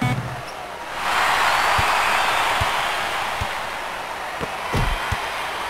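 A crowd cheers loudly, then slowly dies down.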